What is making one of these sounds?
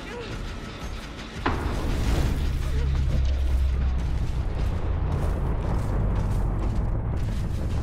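Footsteps tread over dry ground and wooden boards.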